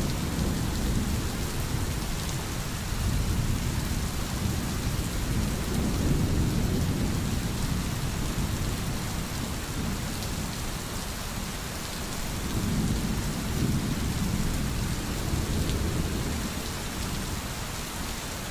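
Rain falls steadily on leaves and a roof.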